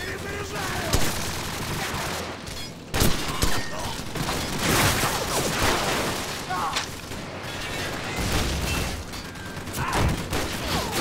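Gunshots crack and echo in short bursts.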